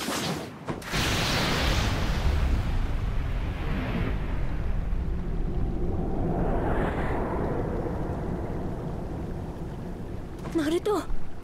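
Wind rushes past loudly, then slowly dies down.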